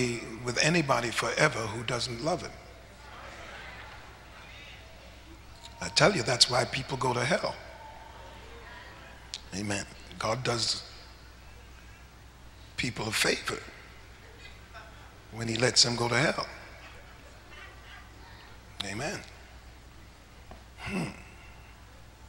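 A man speaks slowly into a microphone, with long pauses, in a large hall.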